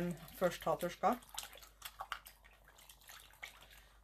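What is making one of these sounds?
Liquid pours into a pot of water.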